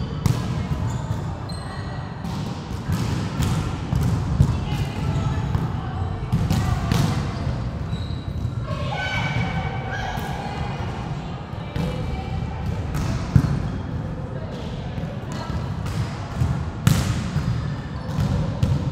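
Young girls call out to each other in an echoing hall.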